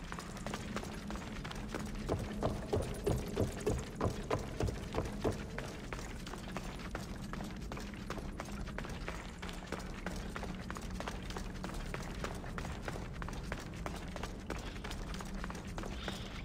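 Footsteps crunch on gravel and stone at a steady pace.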